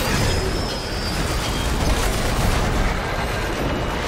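Energy weapons fire and crackle in a loud burst.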